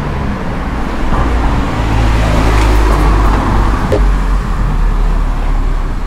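A car passes close by with an engine rumble.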